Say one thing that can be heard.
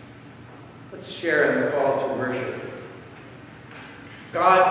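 An older man speaks slowly through a microphone in a large echoing room.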